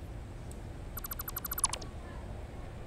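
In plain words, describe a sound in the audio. A rapid electronic clicking sounds as a structure is taken apart.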